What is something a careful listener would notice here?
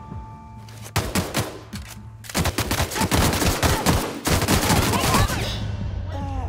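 A gun fires rapid shots in quick bursts.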